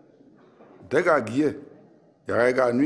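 An elderly man speaks firmly.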